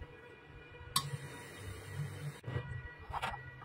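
A welding arc crackles and hisses briefly.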